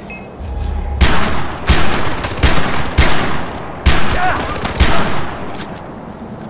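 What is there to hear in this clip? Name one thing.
Loud gunshots ring out one after another, echoing outdoors.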